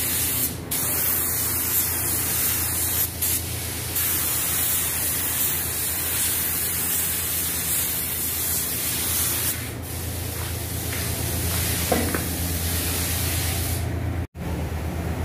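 A spray gun hisses loudly and steadily.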